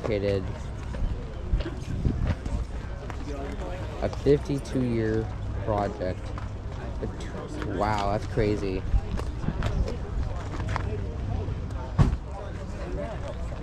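A crowd chatters in the background outdoors.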